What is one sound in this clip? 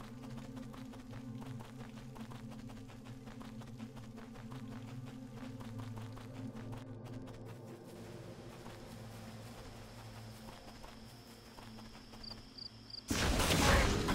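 Footsteps patter steadily.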